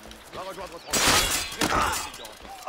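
A blade strikes with a sudden slash and thud.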